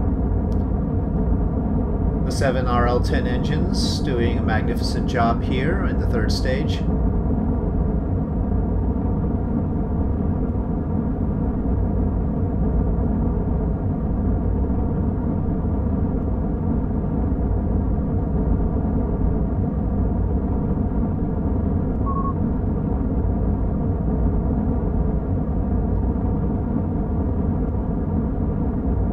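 A rocket engine rumbles steadily and deeply.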